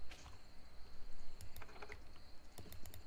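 A locked door handle rattles.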